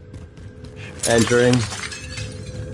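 Glass shatters loudly close by.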